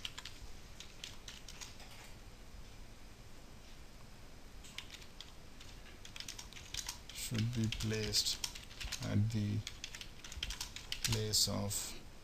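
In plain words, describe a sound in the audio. Keys click rapidly on a computer keyboard.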